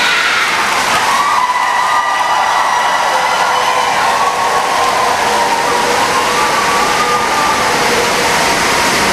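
A crowd of children sings together.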